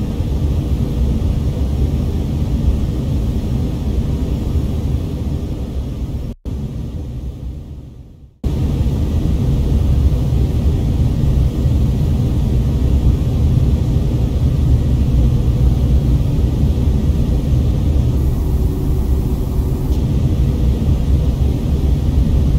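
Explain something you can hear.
A jet engine drones steadily with a deep, muffled roar.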